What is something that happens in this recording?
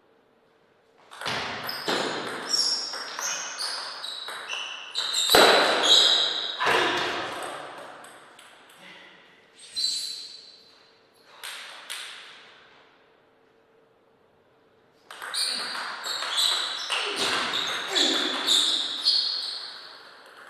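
A table tennis ball clicks quickly back and forth between paddles and the table.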